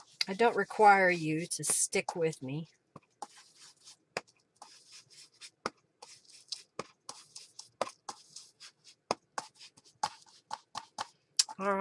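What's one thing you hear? A foam blending tool dabs and taps softly on paper.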